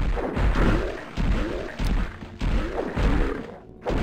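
Electricity crackles and zaps.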